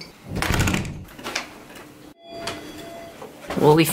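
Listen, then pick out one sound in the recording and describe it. An elevator door slides open.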